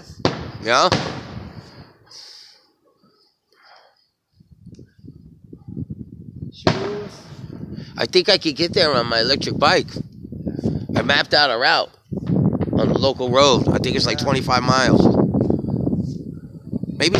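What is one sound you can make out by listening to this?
Fireworks burst and crackle overhead.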